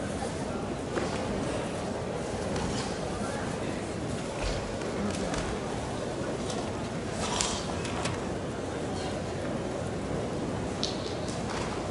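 A karate uniform snaps sharply with quick strikes.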